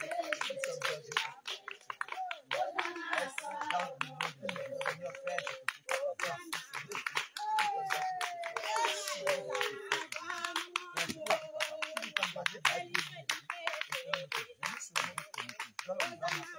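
A man prays aloud with fervour, close by and outdoors.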